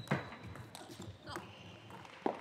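A table tennis ball clicks sharply off paddles and the table in a quick rally.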